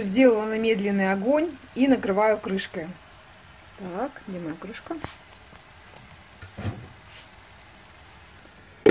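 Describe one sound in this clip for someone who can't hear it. Sauce sizzles and bubbles gently in a hot pan.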